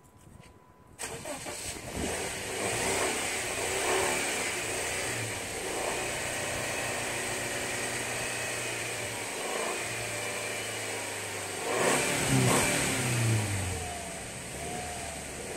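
Gas bursts out of a canister and hisses loudly and steadily.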